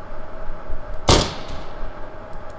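A sniper rifle fires a single loud, sharp shot that rings out briefly.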